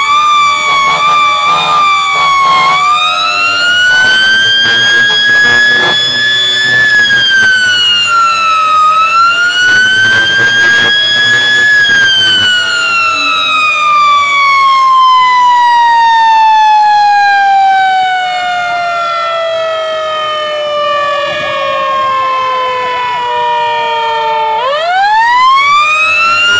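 A fire engine's siren wails loudly close by, rising and falling.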